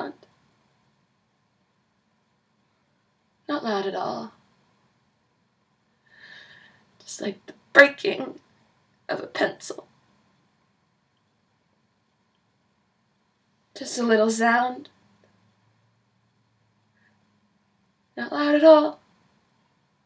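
A young woman speaks close to a microphone in short bursts with pauses.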